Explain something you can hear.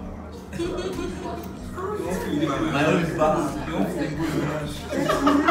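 Several young men and women talk and laugh together close by.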